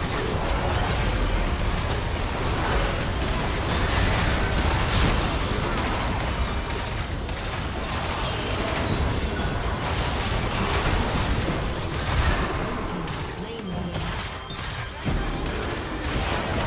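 Magic spells blast and crackle in a hectic fight.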